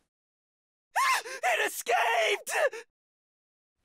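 A young man cries out in alarm.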